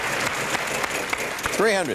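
A spinning prize wheel clicks rapidly.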